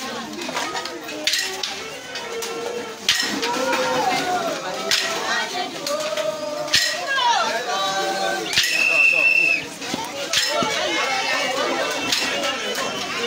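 A crowd of men and women talks and cheers loudly close by.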